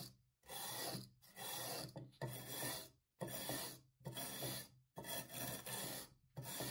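A wire brush scrapes back and forth over a rough surface in repeated strokes.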